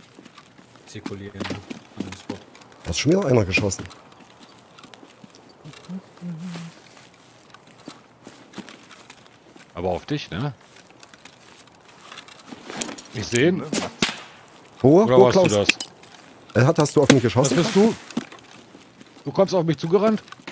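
A man talks with animation, close to a microphone, in bursts.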